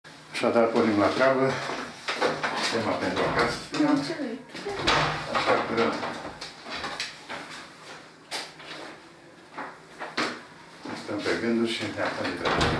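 An elderly man speaks calmly through a clip-on microphone.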